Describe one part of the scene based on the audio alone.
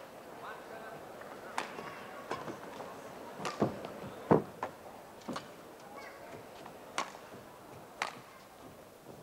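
Rackets smack a shuttlecock back and forth in a sharp, quick rally.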